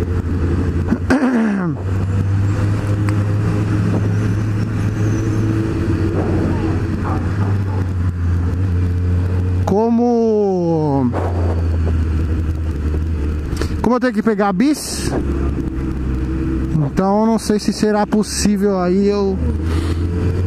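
A motorcycle engine revs up and drops as gears change.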